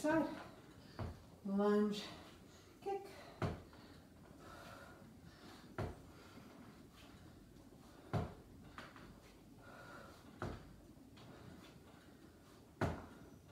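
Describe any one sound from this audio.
Feet thud on a floor at a steady pace.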